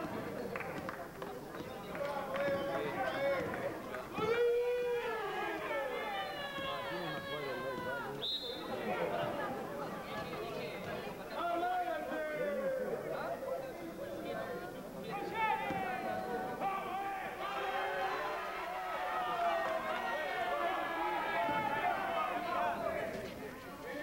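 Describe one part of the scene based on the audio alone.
A man close by talks and shouts with animation.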